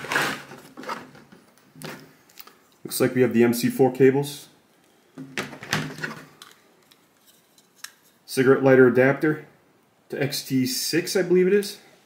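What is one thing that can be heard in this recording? Cables rustle and clack as they are handled.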